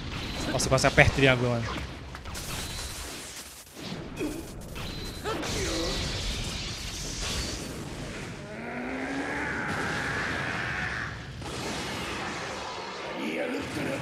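A young man shouts excitedly into a close microphone.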